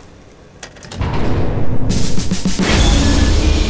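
Heavy machinery rumbles loudly.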